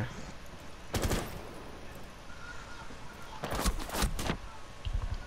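Gunfire cracks in short, sharp bursts.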